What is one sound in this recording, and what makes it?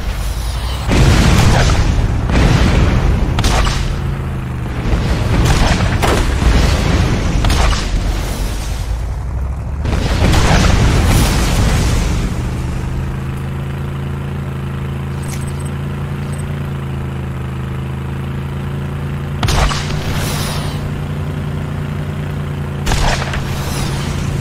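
A vehicle engine hums steadily.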